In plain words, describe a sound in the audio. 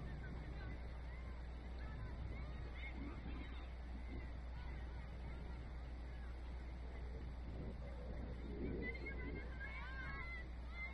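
Young players call out to each other faintly across an open field.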